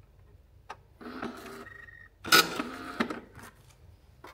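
A time clock stamps a card with a short mechanical clunk.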